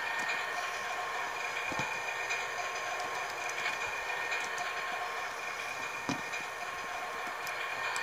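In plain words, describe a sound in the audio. Video game sounds play steadily from laptop speakers.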